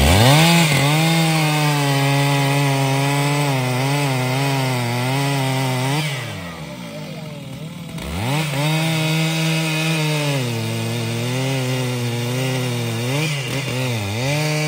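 A chainsaw cuts into a tree trunk.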